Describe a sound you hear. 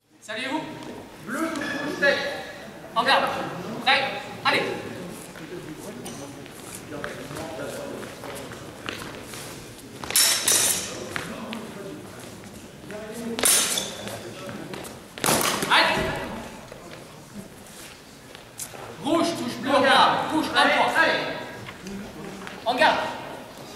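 A man speaks with animation, echoing in a large hall.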